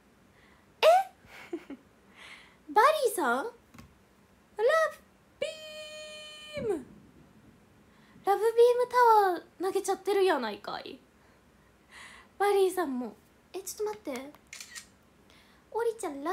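A young woman talks with animation close to a microphone, in short bursts.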